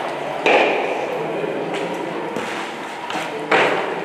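Ice stocks knock and scrape on a hard floor in an echoing hall.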